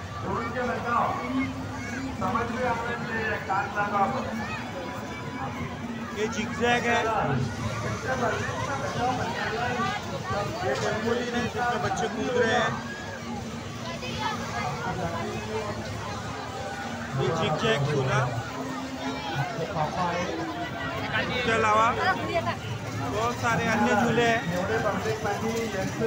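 A fairground ride hums and rattles steadily.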